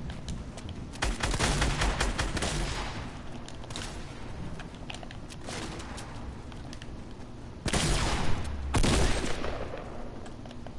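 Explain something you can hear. Gunshots crack in quick bursts from a video game.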